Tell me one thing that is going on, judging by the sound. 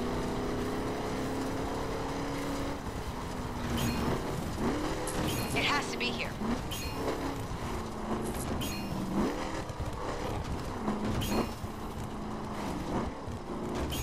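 An off-road truck engine revs and roars, rising and falling in pitch.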